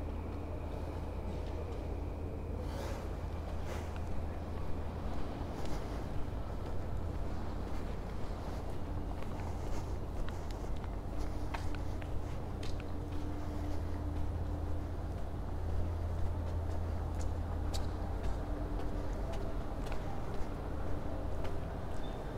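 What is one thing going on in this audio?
Footsteps walk on pavement.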